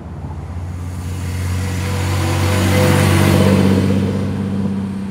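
Tyres hiss on the road as a car passes.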